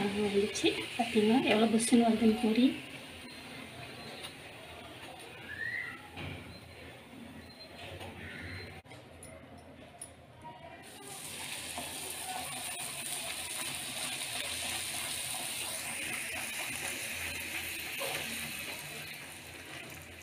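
Hot oil sizzles and bubbles in a pan.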